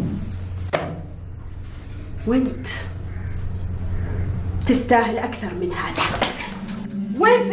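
A young woman speaks angrily.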